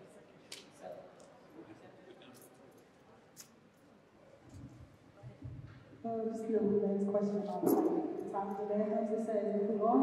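A woman speaks calmly into a microphone, heard through loudspeakers in a large room.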